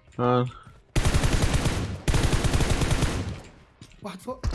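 Rapid gunfire rattles.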